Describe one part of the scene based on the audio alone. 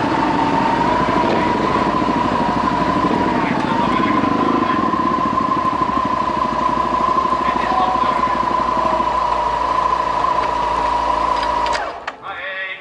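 Motorcycle engines idle with a steady hum close by.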